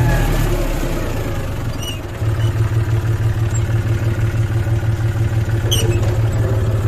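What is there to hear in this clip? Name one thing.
A tractor engine rumbles and throbs steadily close by.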